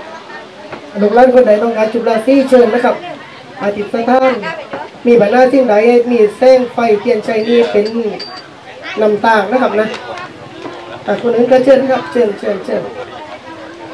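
A young man speaks loudly through a microphone and loudspeaker.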